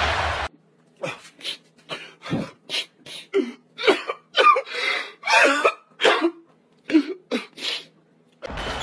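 A man sobs and wails loudly, close up.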